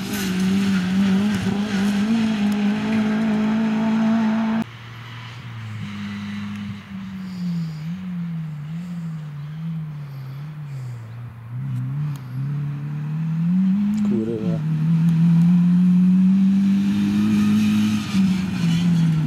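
Tyres crunch and spray on gravel.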